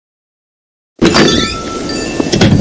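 A wooden door opens with a soft creak.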